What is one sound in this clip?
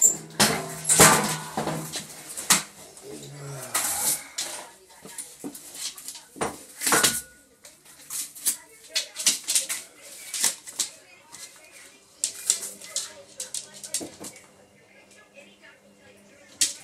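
A dog's claws tap and skitter on a wooden floor.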